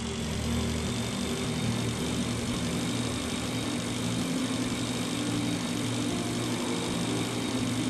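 A cutting tool hums and buzzes steadily against rock.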